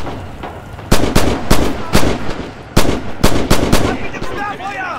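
A rifle fires rapid, loud shots.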